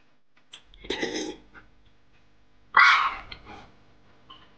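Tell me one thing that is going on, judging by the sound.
A man slurps noodles loudly.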